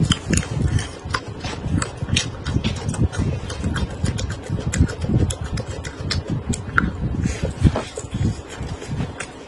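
A crisp fried pastry crunches loudly as a woman bites and chews it close to a microphone.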